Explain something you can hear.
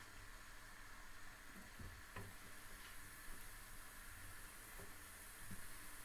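Vegetable slices sizzle softly on a hot grill pan.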